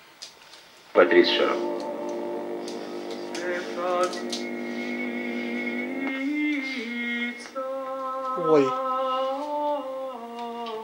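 Music plays from a television loudspeaker.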